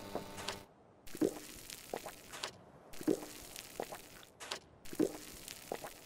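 Small items are picked up with short soft clicks.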